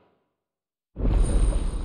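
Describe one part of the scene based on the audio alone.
A low rushing whoosh swells up loudly.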